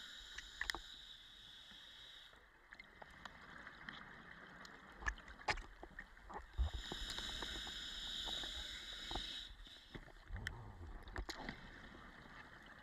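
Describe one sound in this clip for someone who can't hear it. Bubbles rush and gurgle from a diver's regulator underwater.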